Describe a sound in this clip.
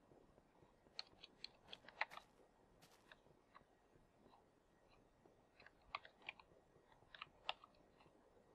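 Footsteps tap on stone at a walking pace.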